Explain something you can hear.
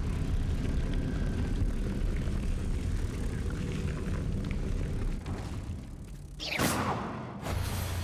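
A magic spell whooshes and hums with a low rumble.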